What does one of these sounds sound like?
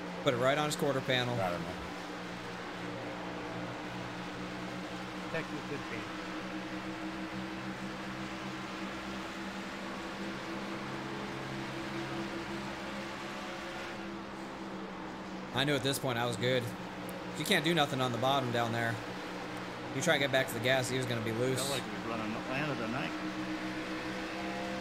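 Race car engines drone steadily at high speed.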